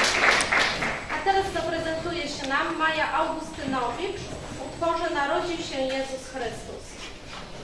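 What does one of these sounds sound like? A woman announces calmly through a microphone.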